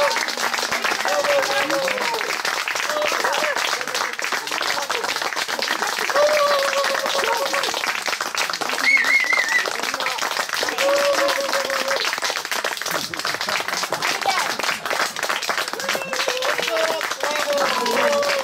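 Hands clap in a steady rhythm.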